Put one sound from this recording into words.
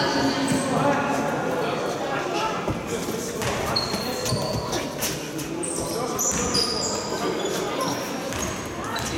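Young men shout to each other across an echoing hall.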